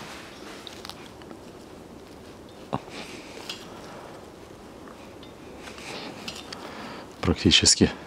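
A wiper arm clicks as a blade is fitted.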